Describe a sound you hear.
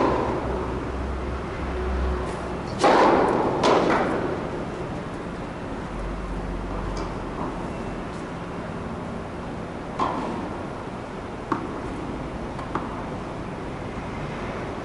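A tennis ball bounces on a hard indoor court.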